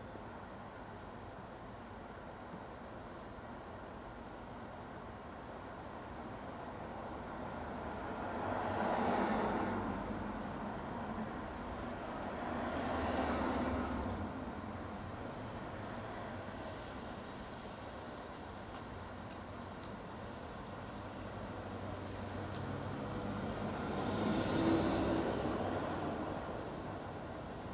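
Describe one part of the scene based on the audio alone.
A car engine idles steadily with a low hum.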